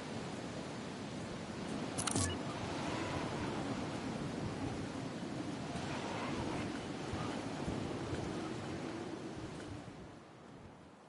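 Wind rushes steadily past a glider in flight.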